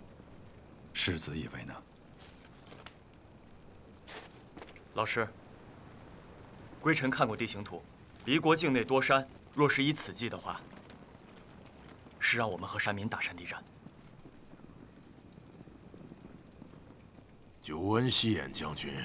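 A man speaks in a low, tense voice, in short bursts with pauses.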